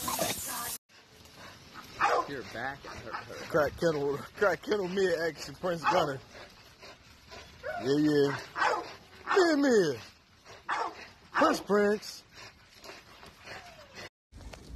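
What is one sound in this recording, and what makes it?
Two dogs snarl and growl as they wrestle.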